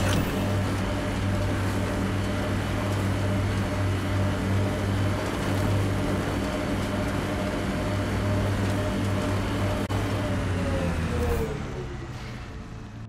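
A vehicle engine hums steadily and then winds down.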